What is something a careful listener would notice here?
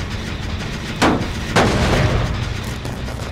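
A machine is kicked with a loud metallic clang.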